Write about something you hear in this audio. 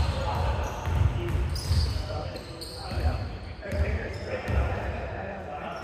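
A basketball bounces with dull thumps in a large echoing hall.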